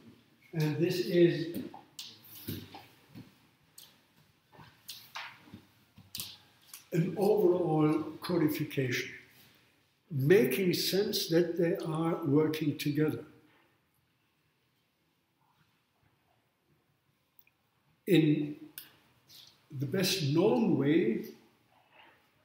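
An elderly man speaks calmly nearby, pausing between phrases.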